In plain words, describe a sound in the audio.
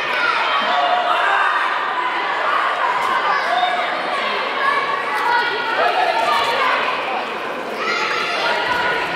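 A crowd of men shouts and cheers in a large echoing hall.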